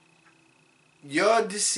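A man speaks up close, calmly.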